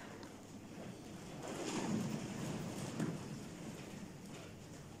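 A man speaks quietly in a large, echoing room.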